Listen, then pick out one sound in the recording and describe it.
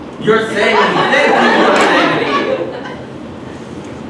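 An audience cheers and applauds loudly in a room.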